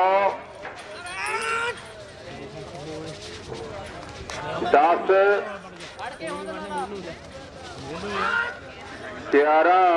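Men shout excitedly nearby.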